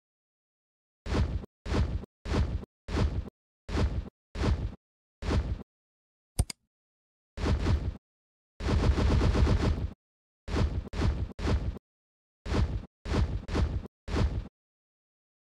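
Short game sound effects pop repeatedly as pieces merge.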